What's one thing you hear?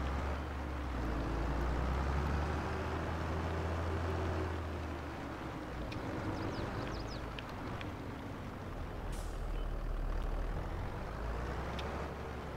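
A tractor engine rumbles steadily, rising and falling in pitch as it drives.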